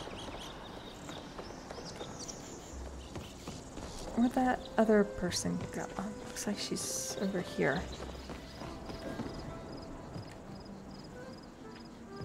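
Footsteps patter on stone paving.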